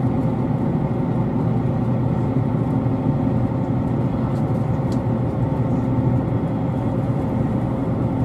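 A train rumbles steadily along the tracks, heard from inside the carriage.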